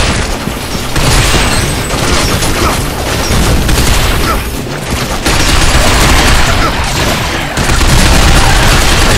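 Rifles fire in rapid, loud bursts.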